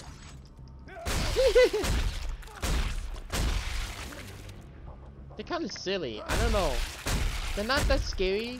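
Heavy boots stomp and squelch on a body.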